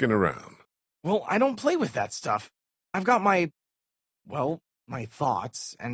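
A young man talks nervously.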